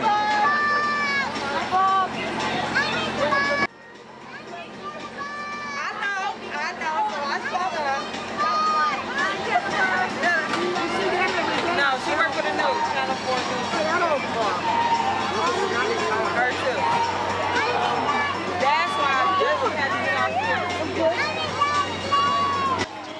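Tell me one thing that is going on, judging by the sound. A crowd of men and women chatters and calls out nearby.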